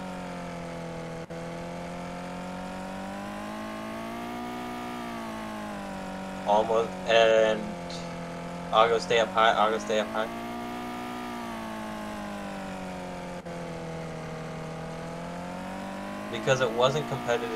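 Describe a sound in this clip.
A midget race car engine drones, rising and falling in pitch as it speeds up and slows.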